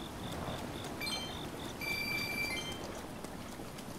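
A bright chime rings out.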